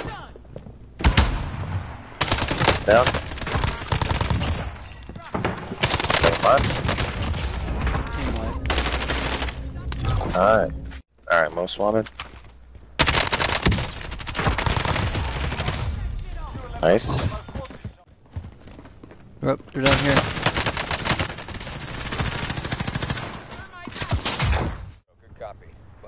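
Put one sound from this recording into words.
Rifle gunfire from a video game rattles in bursts.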